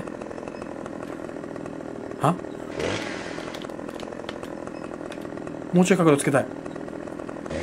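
A chainsaw engine idles steadily.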